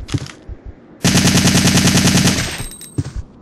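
A machine gun fires a rapid, loud burst.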